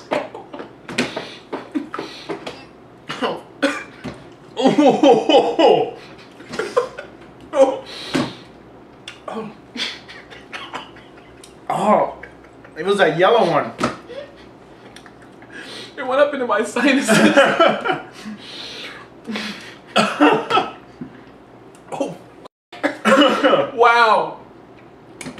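A second man coughs and laughs close by.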